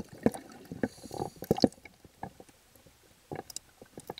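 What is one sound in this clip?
Small waves lap and splash against a microphone at the waterline.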